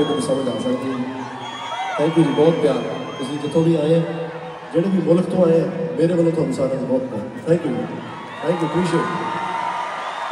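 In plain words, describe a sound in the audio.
A man sings into a microphone through loud speakers in a large echoing arena.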